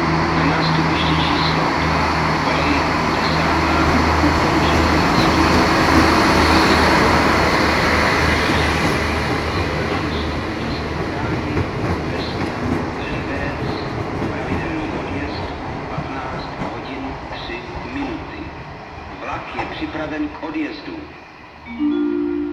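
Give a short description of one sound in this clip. Train wheels clatter and squeal over the rails, slowly fading into the distance.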